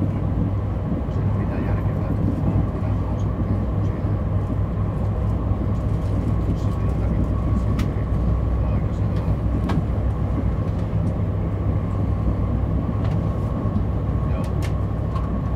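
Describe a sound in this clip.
Wheels click and squeal on the rails.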